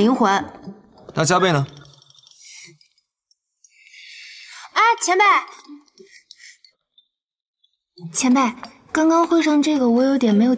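A young woman speaks coolly and close by.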